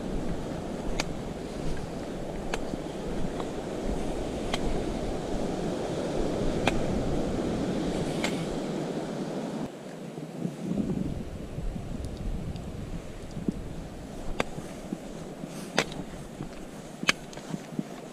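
A walking pole taps sharply on rock at a steady pace.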